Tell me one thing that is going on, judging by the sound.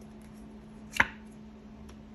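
A card slaps down onto a table.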